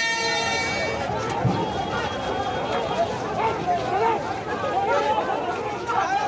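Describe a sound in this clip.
A crowd of men shout and clamour outdoors.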